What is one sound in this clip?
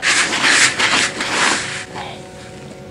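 A hand rubs and stirs through gritty bait mix in a bucket.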